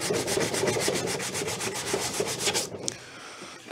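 A man rubs sandpaper back and forth over wood in quick strokes.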